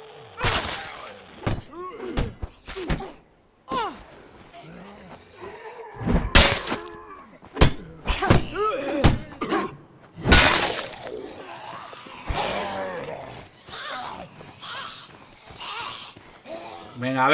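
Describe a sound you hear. Creatures growl and snarl.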